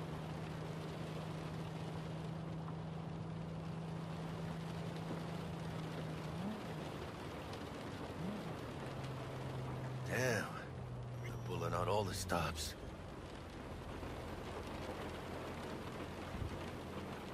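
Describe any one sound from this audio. A car engine hums steadily as the car drives slowly.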